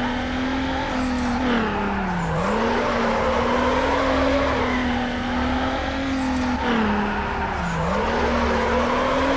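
A car engine revs high and shifts gears as the car races.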